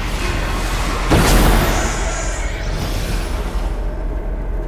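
A spell bursts with a loud rushing whoosh.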